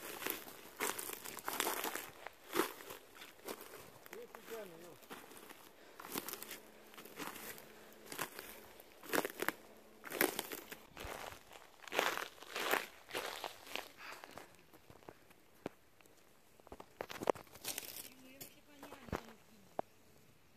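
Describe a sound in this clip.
Footsteps crunch on dry moss and snapping twigs.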